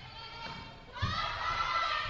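A volleyball is struck with a hand and thuds.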